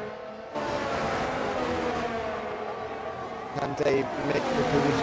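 Racing car engines whine at high speed.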